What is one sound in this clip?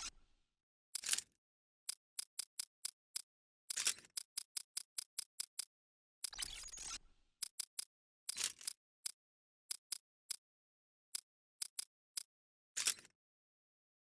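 Short menu clicks tick as pages change.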